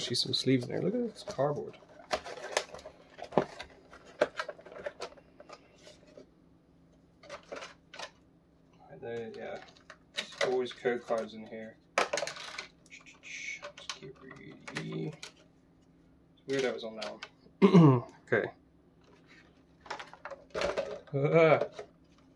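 Plastic packaging crinkles and clicks as hands handle it.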